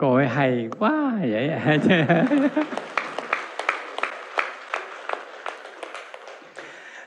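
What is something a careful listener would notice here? A crowd claps rhythmically.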